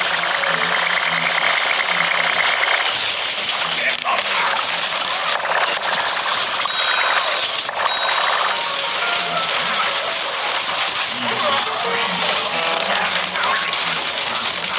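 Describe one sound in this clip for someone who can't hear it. Rapid gunfire blasts repeatedly amid loud action.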